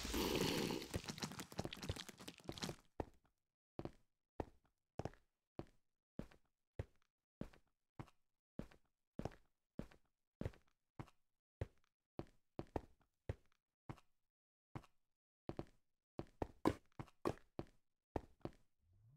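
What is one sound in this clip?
Footsteps crunch on snow at a steady pace.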